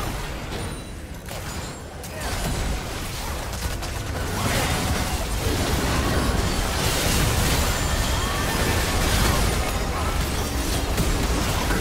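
Magic blasts and clashing hits from a video game battle crackle in a dense, busy flurry.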